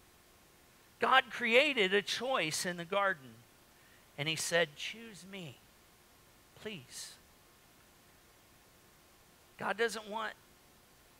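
An older man speaks slowly and with animation through a microphone, with pauses between phrases.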